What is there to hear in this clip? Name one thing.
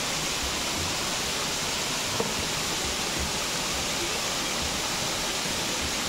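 Water rushes steadily over a small waterfall nearby.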